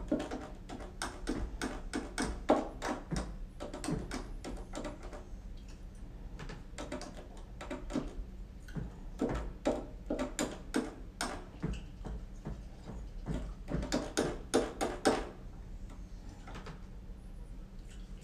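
Plastic keyboard keys and pads tap and click quickly under fingers.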